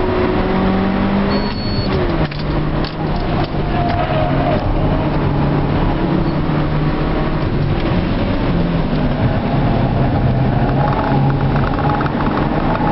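A car engine revs hard from inside the car, rising and falling in pitch.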